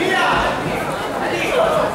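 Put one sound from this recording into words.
Boxing gloves thud against each other.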